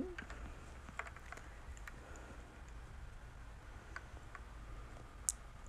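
A young woman speaks softly close to a phone microphone.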